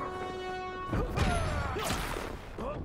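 A laser beam fires with a crackling blast.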